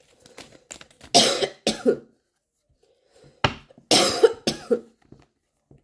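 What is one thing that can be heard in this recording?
Stiff cards rustle and slap together in a hand.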